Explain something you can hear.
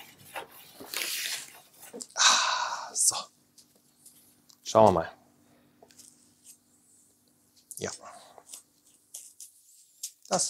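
A knife blade scrapes across a sharpening stone.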